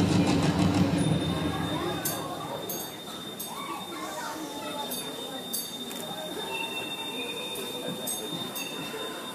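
Children chatter softly nearby in an audience.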